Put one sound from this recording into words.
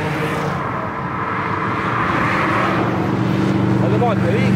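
A car passes by with a rush of tyres on the road.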